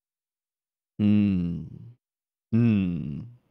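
A young man speaks briefly and calmly into a close microphone.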